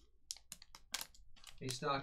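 A foil wrapper crinkles in hands.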